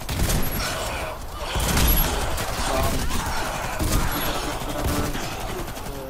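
A shotgun fires loud booming blasts, one after another.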